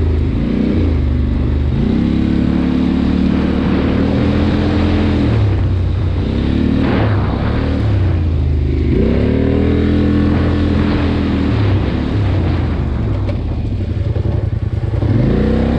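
Leaves and branches brush against a moving vehicle.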